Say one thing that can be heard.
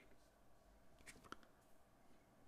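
Small plastic pieces click against each other.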